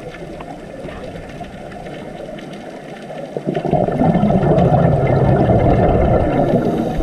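Water rumbles and rushes with a muffled underwater hum, growing louder partway through.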